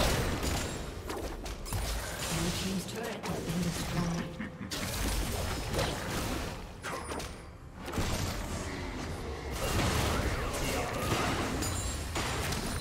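Spell blasts and weapon clashes crackle in a hectic video game fight.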